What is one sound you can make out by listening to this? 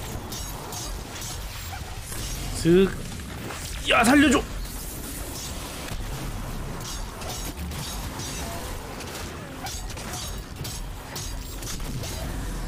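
Fiery blasts roar and crackle.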